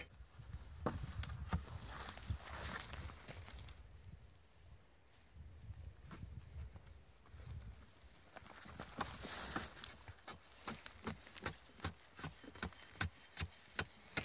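A blade scrapes and shaves along a wooden board in repeated strokes.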